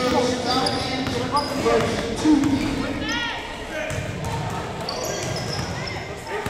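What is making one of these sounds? A crowd of spectators murmurs and calls out in a large echoing gym.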